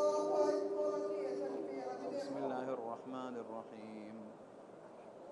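A man chants in a long, drawn-out voice through a loudspeaker, in a large echoing space.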